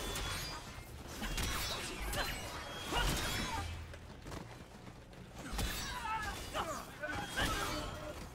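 Energy blasts crackle and whoosh in quick bursts.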